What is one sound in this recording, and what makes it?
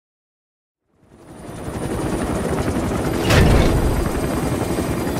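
A helicopter rumbles and roars from inside its cabin.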